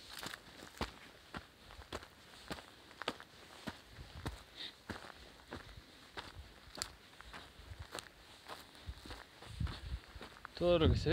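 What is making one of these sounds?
Footsteps crunch steadily on dry, rocky ground.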